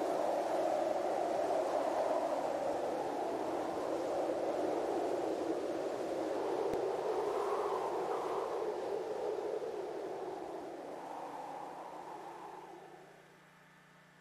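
A heavy truck roars past and rumbles away into the distance.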